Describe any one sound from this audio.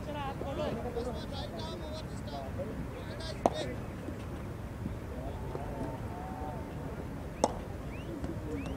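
Men call out across an open field from a distance.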